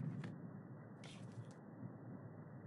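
Paper rustles as a clipboard is lowered.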